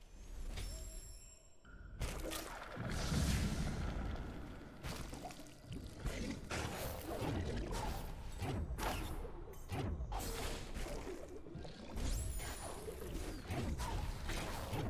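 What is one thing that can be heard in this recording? Soft chimes and whooshing magical effects sound in bursts.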